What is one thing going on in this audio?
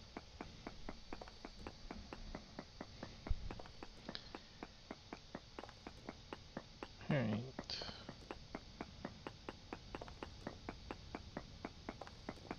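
A pickaxe chips at stone in quick, even strikes.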